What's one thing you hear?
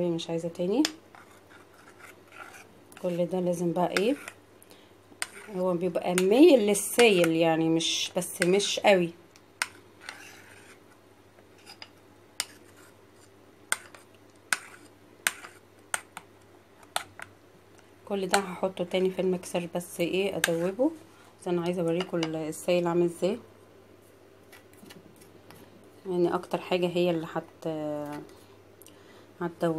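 A spoon clinks and scrapes against a bowl while stirring batter.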